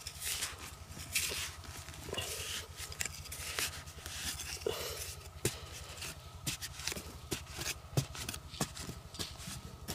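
A shovel scrapes and digs into loose soil.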